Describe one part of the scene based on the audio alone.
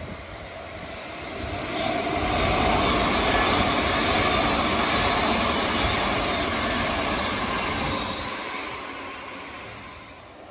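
A second electric train approaches, roars past close by and fades into the distance.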